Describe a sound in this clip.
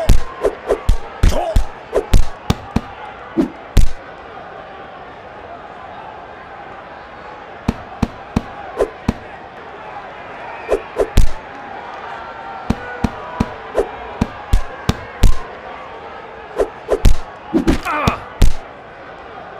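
Punches land with sharp thuds in quick bursts.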